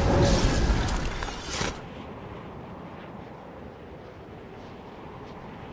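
Wind rushes steadily past during a high glide.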